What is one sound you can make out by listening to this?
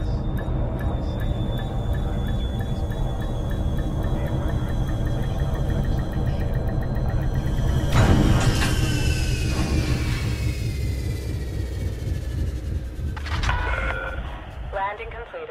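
A spaceship engine hums with a deep, steady rumble, then fades away.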